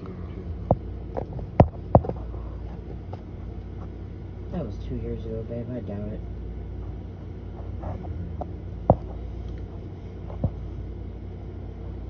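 A van's engine idles nearby with a low steady rumble.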